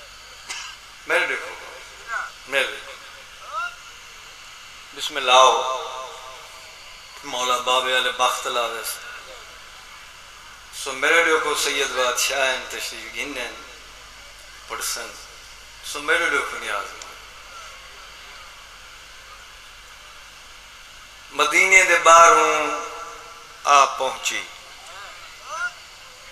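A middle-aged man speaks passionately into a microphone through loudspeakers, in bursts with pauses.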